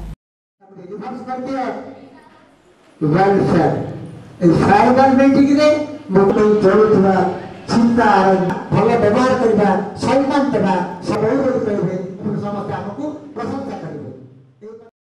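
An elderly man sings into a microphone, heard through a loudspeaker.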